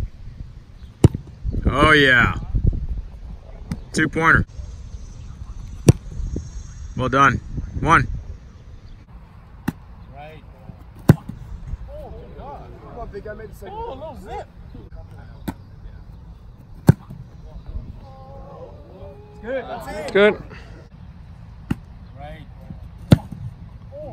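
A kicker's foot thumps into an American football outdoors.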